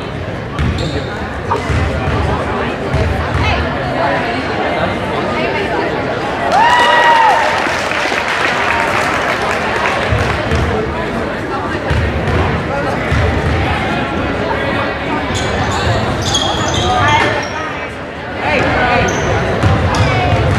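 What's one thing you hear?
Spectators talk and call out throughout an echoing gym.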